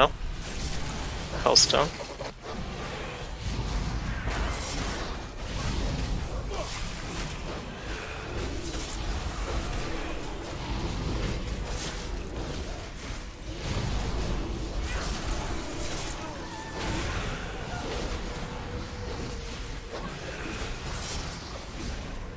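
Game combat sounds of spells and weapon hits play steadily.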